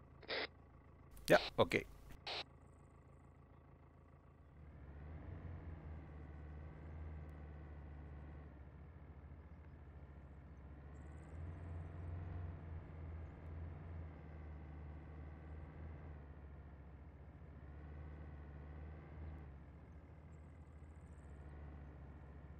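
A vehicle engine hums and rumbles steadily as it drives.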